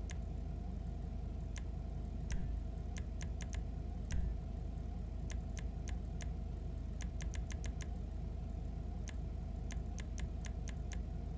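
A car engine idles with a low steady rumble.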